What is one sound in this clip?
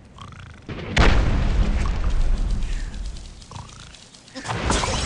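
Wooden blocks crash and break apart as a tower collapses.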